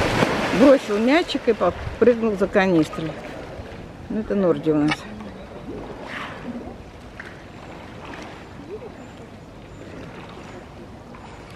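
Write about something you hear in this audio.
Water sloshes and splashes as an animal swims.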